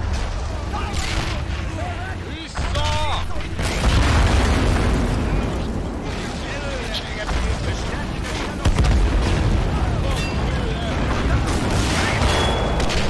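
Gunfire crackles in bursts.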